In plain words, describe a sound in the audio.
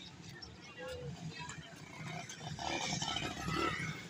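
A motorcycle engine putters as the motorcycle rides past close by.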